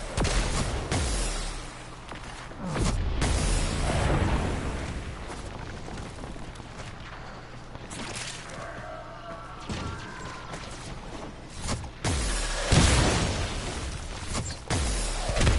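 Loud energy blasts crackle and whoosh in bursts.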